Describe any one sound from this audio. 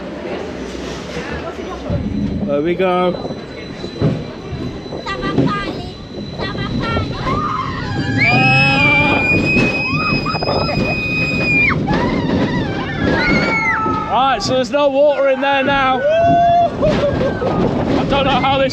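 A roller coaster train rumbles and clatters along its track.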